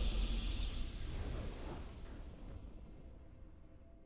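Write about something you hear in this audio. A triumphant fanfare swells and then fades away.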